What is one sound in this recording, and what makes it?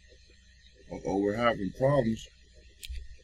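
A young man speaks briefly and quietly into a microphone.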